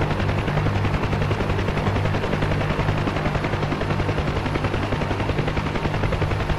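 Vehicle engines rumble steadily.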